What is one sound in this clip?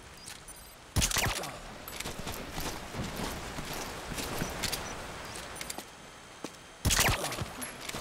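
A silenced pistol fires with a sharp muffled crack.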